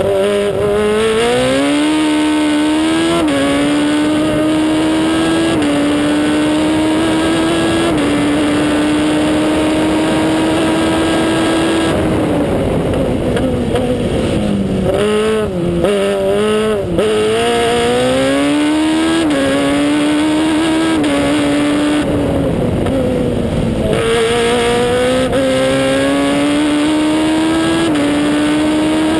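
A racing car engine roars loudly close by, revving up through the gears and dropping on braking.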